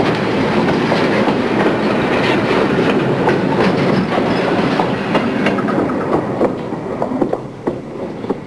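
A diesel train roars and rattles past close by.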